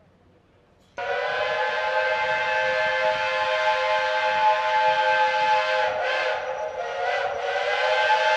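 A diesel locomotive's horn blares loudly and steadily.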